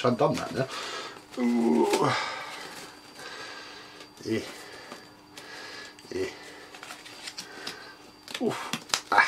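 A plastic filter rustles and clicks as hands handle it.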